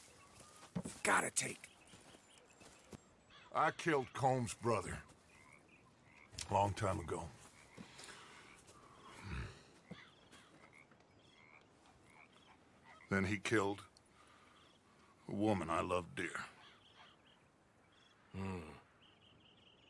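A man speaks in a low, gravelly voice, slowly and gravely.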